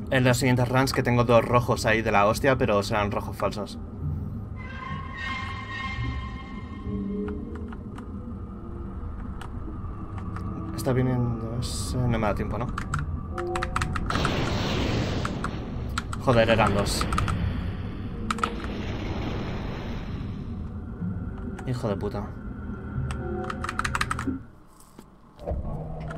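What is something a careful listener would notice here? Keys clack on a keyboard.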